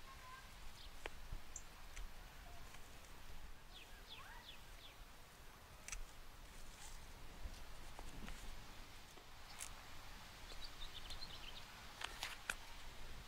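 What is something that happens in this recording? Pruning shears snip plant stems with soft clicks.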